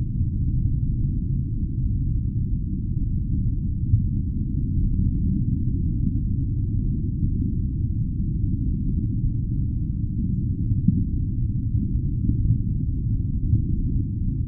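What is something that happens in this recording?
Water swirls and churns in a low, muffled underwater rush.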